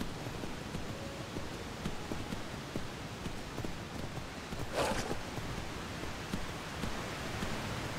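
A river rushes nearby.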